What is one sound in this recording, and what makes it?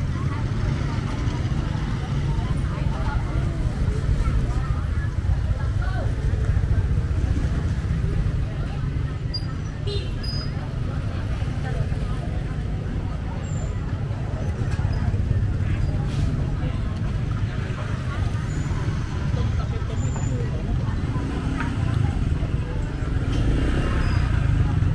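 A busy outdoor crowd murmurs and chatters.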